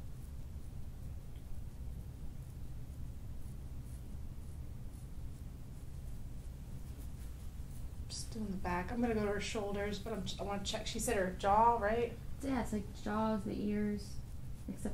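Fingers rustle softly through hair.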